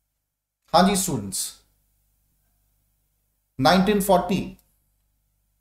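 A man speaks calmly and closely into a microphone in two short phrases.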